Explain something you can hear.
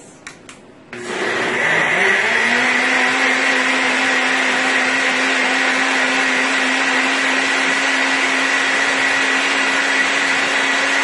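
A blender whirs loudly and steadily.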